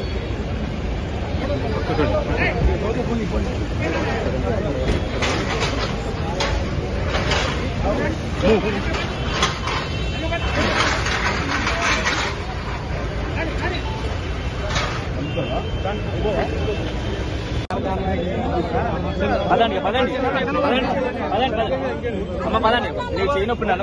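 A large crowd of men talks and shouts all around, close by.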